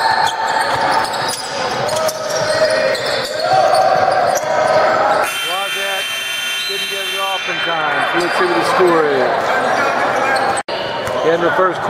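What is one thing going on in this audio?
Players and spectators shout and call out in a large echoing hall.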